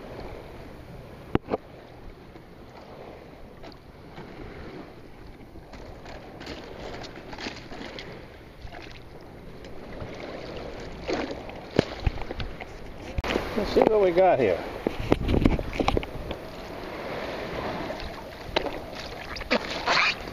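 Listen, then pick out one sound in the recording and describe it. Water laps gently.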